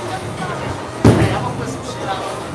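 Bowling pins crash and clatter.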